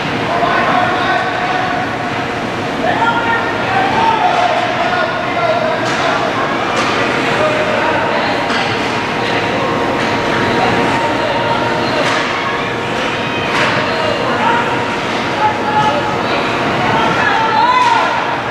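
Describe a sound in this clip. Young players shout across an echoing rink.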